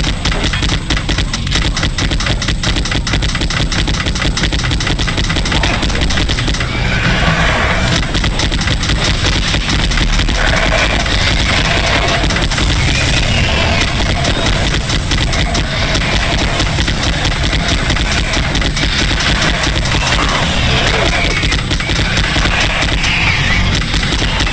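A rapid-firing gun blasts in a fast, unbroken stream of shots.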